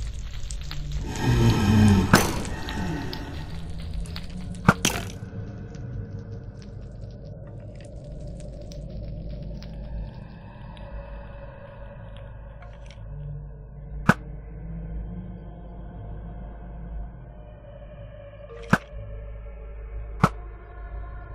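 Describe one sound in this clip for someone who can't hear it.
A bow twangs as arrows fly off.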